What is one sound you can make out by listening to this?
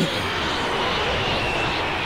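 An energy blast hits with a rushing burst.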